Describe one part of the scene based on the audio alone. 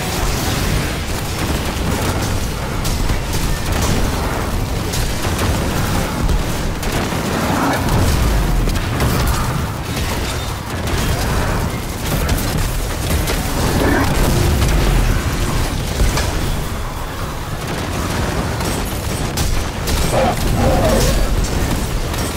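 Explosions boom with deep rumbling blasts.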